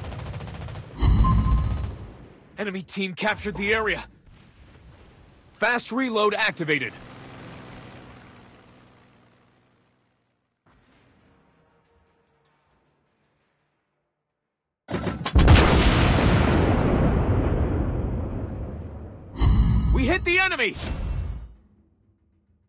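Heavy naval guns fire with deep booms that rumble away.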